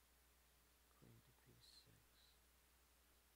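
A man speaks a few quiet words close to a microphone.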